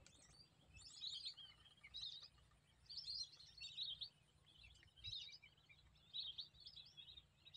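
A flock of birds calls noisily overhead outdoors.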